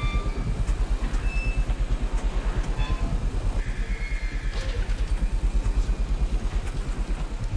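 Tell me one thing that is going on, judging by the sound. Steam hisses from vents.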